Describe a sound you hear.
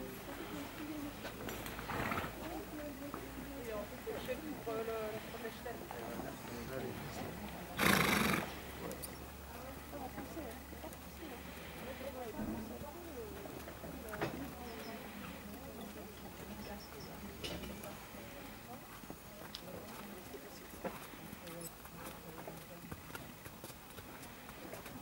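A horse trots on soft sand with muffled hoofbeats.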